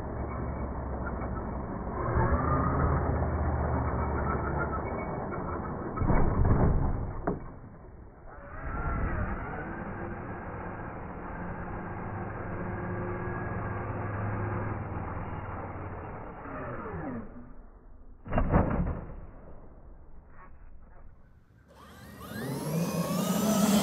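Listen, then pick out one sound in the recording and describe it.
A small electric motor whines and revs loudly.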